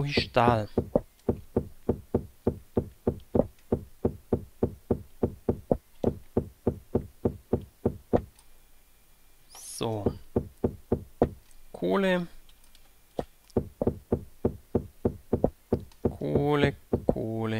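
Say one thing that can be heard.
A pickaxe chips at stone with quick, steady taps.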